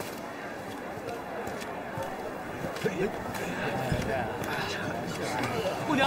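A crowd of men and women murmurs and chatters outdoors.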